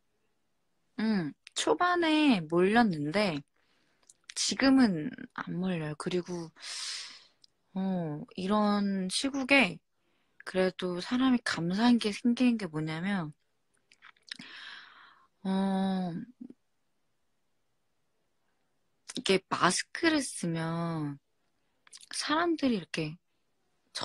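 A young woman talks with animation close to a phone's microphone.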